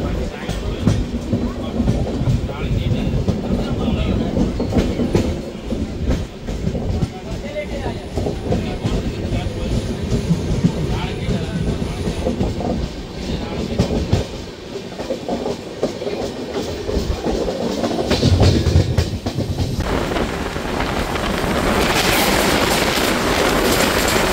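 A train rumbles and clatters steadily over the rails.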